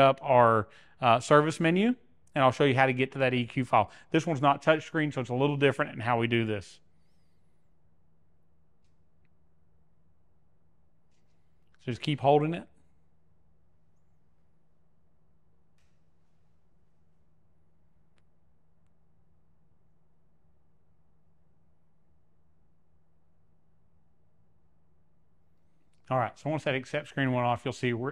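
A man talks calmly and clearly into a clip-on microphone, close by.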